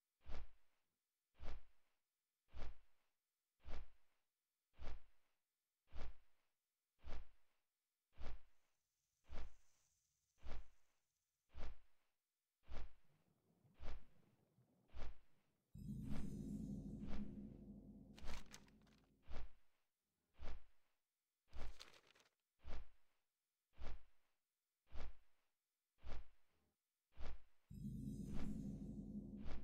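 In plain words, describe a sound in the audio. Large leathery wings flap in a slow, steady rhythm.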